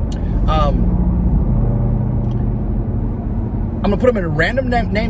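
A car engine hums steadily inside a vehicle.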